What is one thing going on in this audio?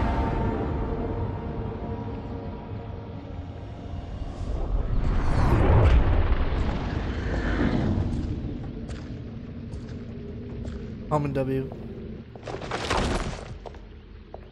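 A magical portal roars and swirls with a deep rushing whoosh.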